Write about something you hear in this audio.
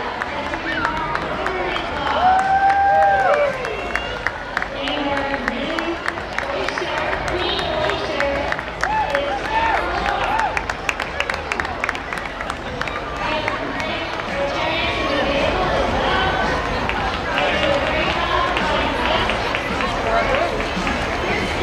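A large crowd chatters and cheers along an outdoor street.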